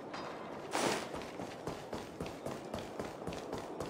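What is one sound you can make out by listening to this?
Quick footsteps run across a stone floor.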